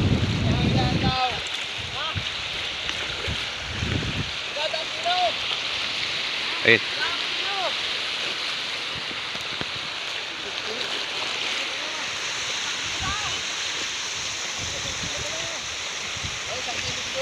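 Waves wash steadily onto a shore.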